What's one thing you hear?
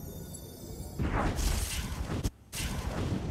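A magical portal whooshes and hums as a character teleports.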